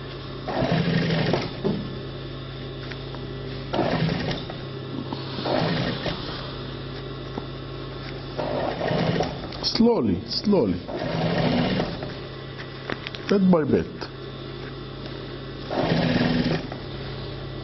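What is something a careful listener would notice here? A sewing machine stitches in short bursts.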